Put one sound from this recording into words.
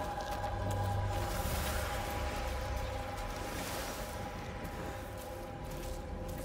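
A torch flame crackles and flutters.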